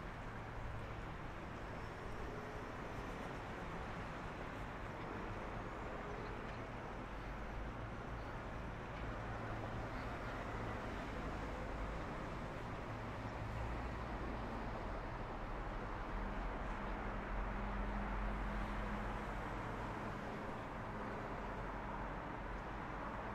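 Distant city traffic hums steadily outdoors.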